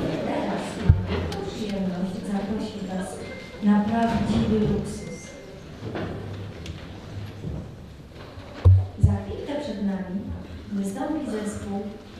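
A seated crowd murmurs and chatters.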